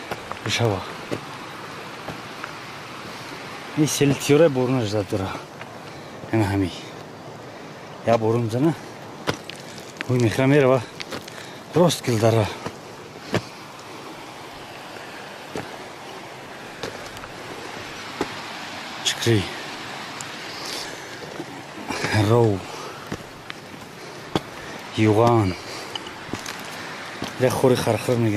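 Footsteps crunch on loose stony ground.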